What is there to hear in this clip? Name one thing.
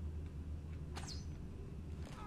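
A weapon strikes a body with a sharp hit.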